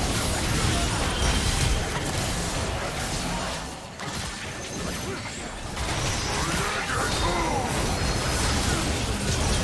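Magic blasts and hits crash in a fast video game battle.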